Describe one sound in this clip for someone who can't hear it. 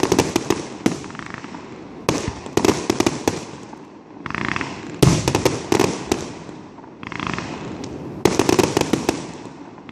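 Fireworks burst with sharp bangs and crackles, echoing over open ground.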